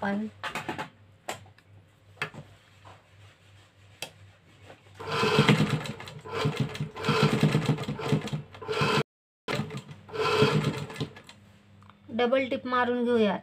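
A sewing machine motor hums and the needle stitches.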